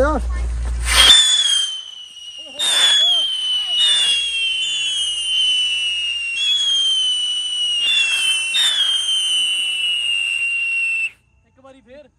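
Fireworks whistle loudly, each whistle sliding down in pitch.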